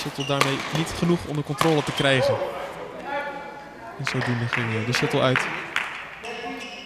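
Shuttlecocks are struck sharply with rackets in a large echoing hall.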